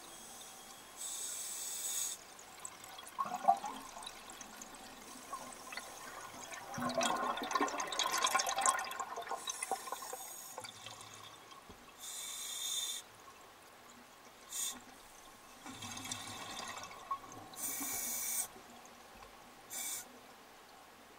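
A diver's breathing regulator hisses sharply with each breath.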